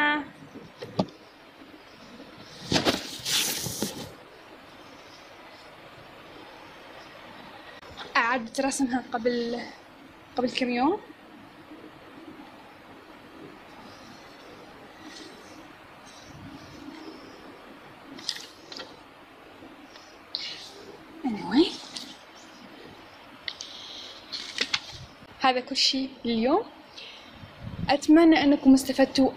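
Paper rustles and slides as sheets are moved by hand.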